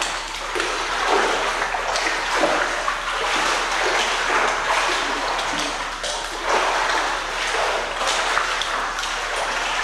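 A swimmer splashes through water in an echoing indoor pool.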